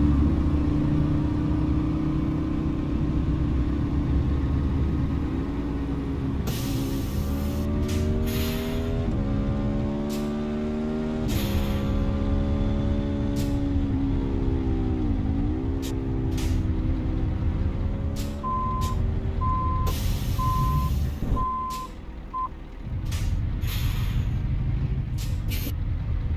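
A truck engine rumbles and revs up and down through the gears.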